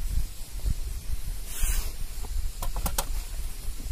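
Potatoes thud into a metal pan.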